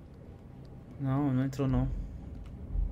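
A young man makes a short drawn-out vocal sound close to a microphone.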